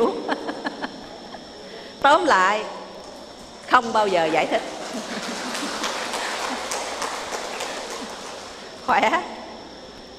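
An elderly woman laughs into a microphone.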